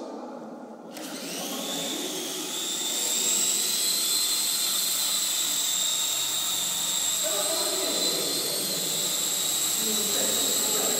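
A toy helicopter's motor whines, rising in pitch as it spins up, then holds steady.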